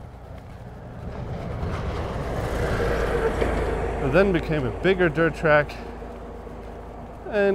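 A truck rumbles past close by and fades into the distance.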